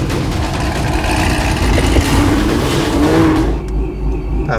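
A car engine roars loudly as the car pulls away.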